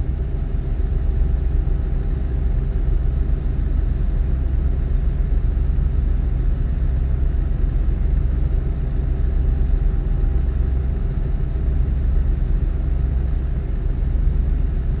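A truck engine drones steadily while driving on a motorway.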